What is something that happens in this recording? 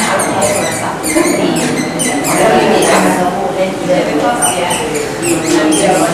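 An eraser rubs and squeaks across a whiteboard in quick strokes.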